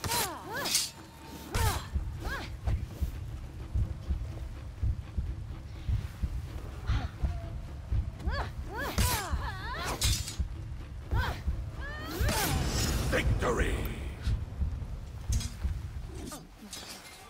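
Blades clash and strike in quick, sharp blows.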